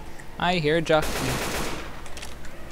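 A gun fires a loud shot.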